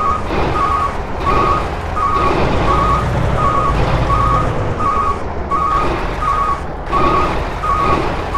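A reversing alarm beeps in a quick, even rhythm.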